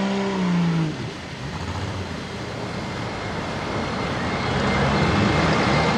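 Muddy water splashes and sprays as a vehicle plows through it.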